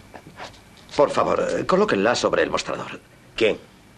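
A young man answers with agitation.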